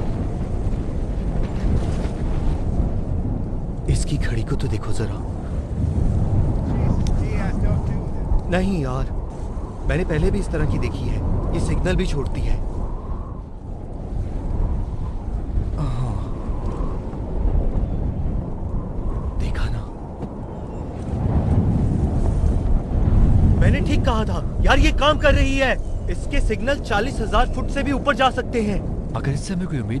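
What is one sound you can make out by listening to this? Wind blows hard outdoors with a low, steady rumble.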